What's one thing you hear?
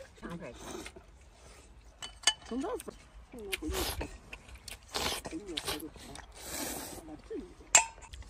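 A man noisily slurps noodles, close by.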